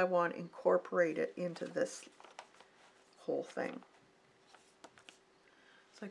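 Paper rustles as a sheet is slid and lifted.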